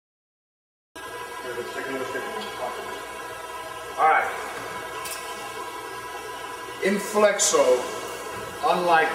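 A man speaks into a handheld microphone.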